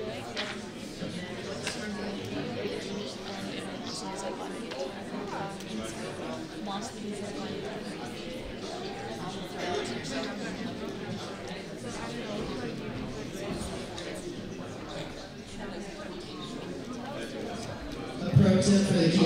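A woman speaks through a microphone, heard at a distance in a large room.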